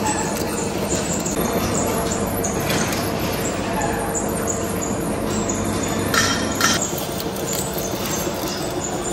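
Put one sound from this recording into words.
A cutting tool scrapes and hisses against spinning metal.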